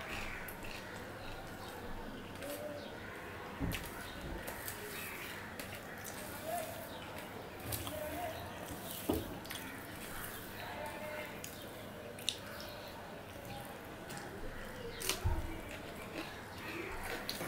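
Fingers squelch and mix wet rice on a metal plate.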